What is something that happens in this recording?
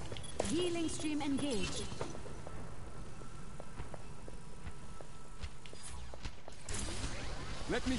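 Game weapons fire in quick, sharp bursts.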